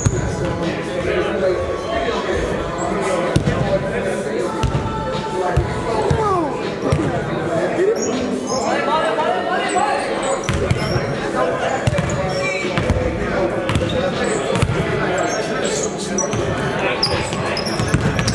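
Young men call out to each other across the court.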